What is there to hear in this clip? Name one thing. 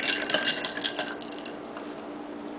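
A metal knife stirs ice cubes in a glass, clinking against the sides.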